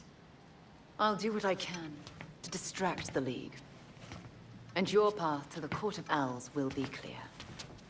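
A woman answers calmly and close by.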